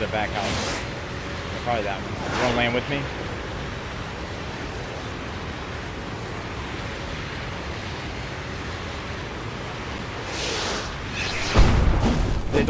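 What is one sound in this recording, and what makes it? A rocket roars steadily as it flies.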